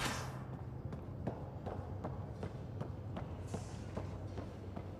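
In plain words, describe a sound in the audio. Footsteps tap steadily on a metal floor.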